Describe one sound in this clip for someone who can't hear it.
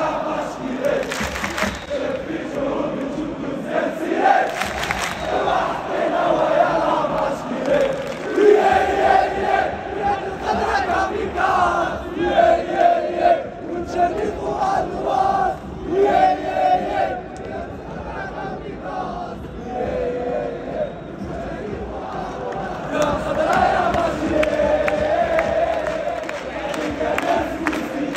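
A huge stadium crowd sings and chants loudly, echoing all around.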